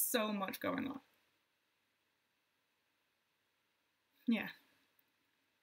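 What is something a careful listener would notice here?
A young woman speaks calmly into a microphone, heard as if over an online call.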